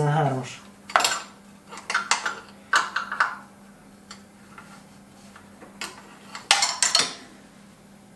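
Metal parts clink and rattle under a man's hands.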